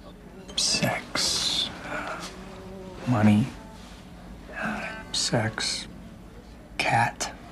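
A young woman speaks softly in short phrases nearby.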